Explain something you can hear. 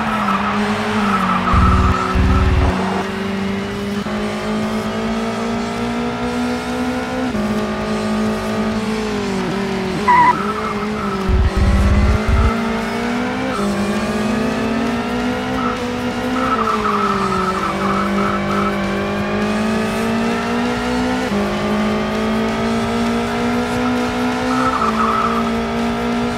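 Tyres screech on a track through corners.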